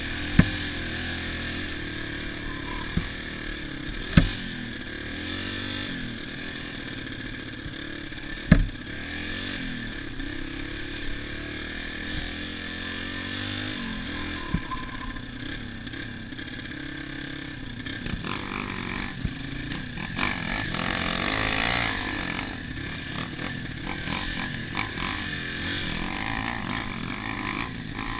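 A dirt bike engine hums and revs steadily up close.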